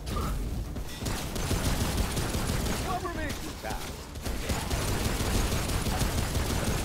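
Automatic gunfire rattles rapidly.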